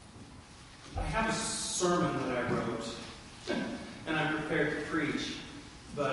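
A middle-aged man speaks with emphasis through a microphone in a large echoing hall.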